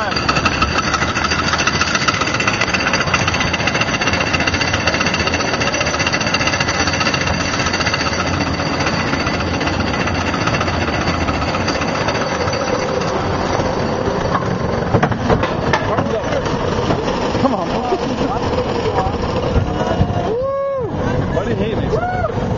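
A steel roller coaster rumbles and clatters along its track.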